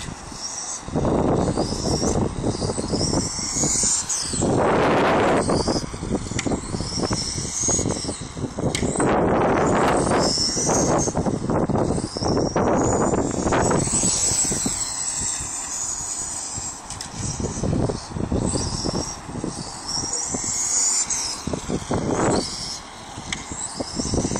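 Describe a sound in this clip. A small electric model car whines high and shrill as it speeds around a track, rising and falling in pitch.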